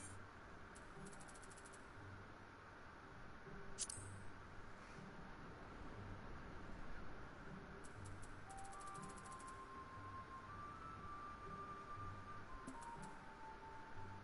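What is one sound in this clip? Soft menu clicks tick in quick bursts.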